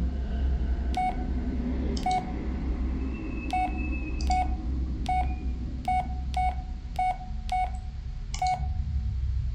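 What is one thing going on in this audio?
A mobile phone beeps briefly as its keys are pressed.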